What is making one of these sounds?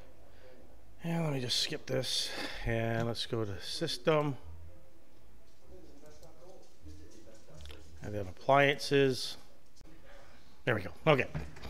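A middle-aged man talks calmly and clearly into a microphone, heard close.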